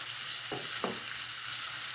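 A wooden spoon stirs and scrapes in a metal pot.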